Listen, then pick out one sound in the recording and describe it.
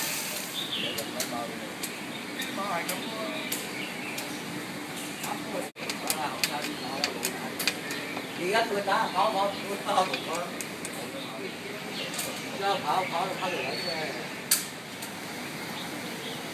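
Elderly men talk casually nearby.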